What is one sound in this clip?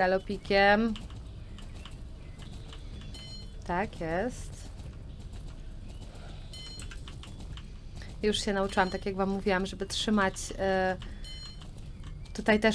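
A horse gallops with quick, steady hoofbeats.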